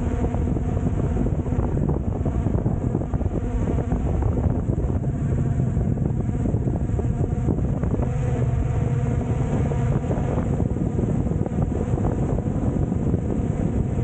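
A drone's propellers buzz loudly close by.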